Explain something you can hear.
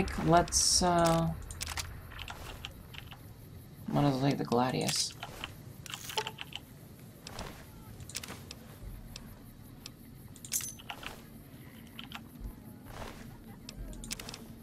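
Short electronic beeps and clicks sound as a game menu is used.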